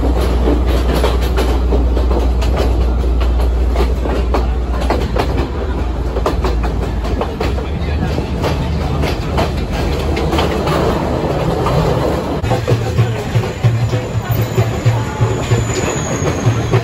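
A train rumbles and clatters steadily along the rails.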